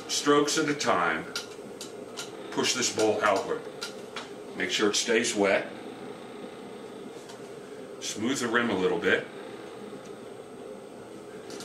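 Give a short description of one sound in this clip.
A pottery wheel spins with a faint motor hum.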